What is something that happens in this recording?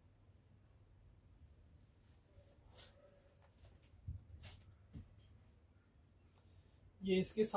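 Fabric rustles softly as hands unfold and lift it.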